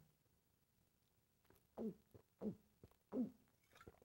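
A man gulps from a bottle.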